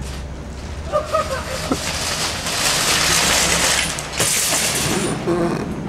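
A shopping cart rattles down a gravel path.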